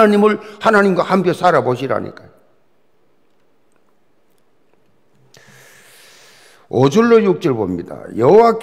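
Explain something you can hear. An elderly man speaks with emphasis through a microphone.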